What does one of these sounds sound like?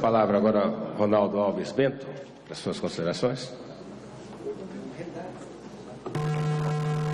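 A man speaks calmly into a microphone, heard over loudspeakers in a large room.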